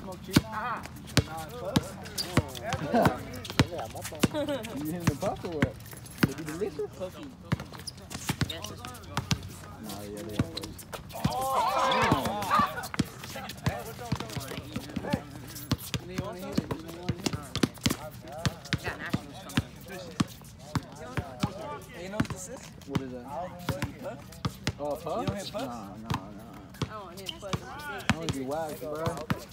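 A basketball bounces on hard pavement with sharp thuds.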